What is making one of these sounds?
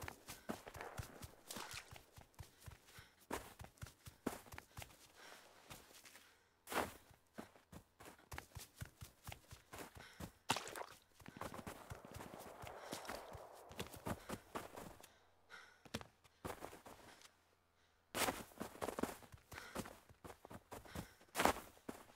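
Quick footsteps crunch through snow and dry grass.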